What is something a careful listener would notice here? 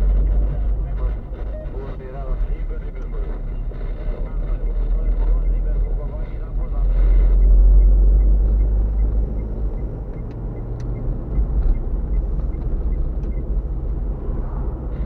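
A car drives along an asphalt road, heard from inside with a low engine and road rumble.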